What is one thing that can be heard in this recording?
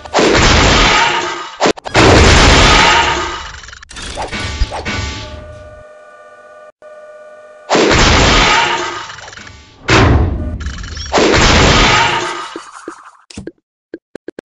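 A mechanical crane whirs and rumbles loudly in bursts.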